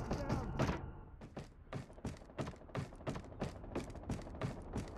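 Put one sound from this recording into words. Footsteps tap quickly on a hard deck.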